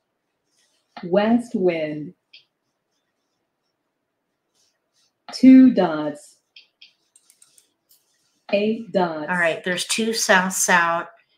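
A woman speaks with animation through a microphone, in short bursts.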